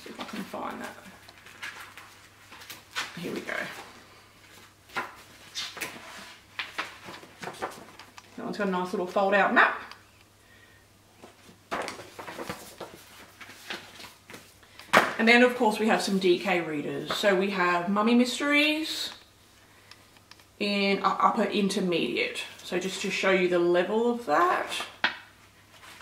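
Paper pages rustle and flip as a book is leafed through.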